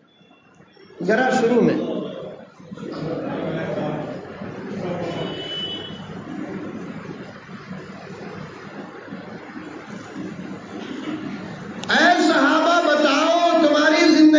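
A man preaches with feeling through a microphone and loudspeakers.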